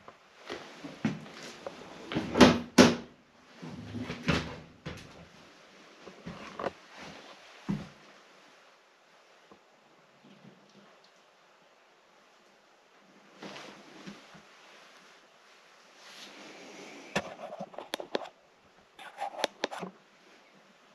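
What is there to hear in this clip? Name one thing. Footsteps crunch and rustle over scattered paper and debris.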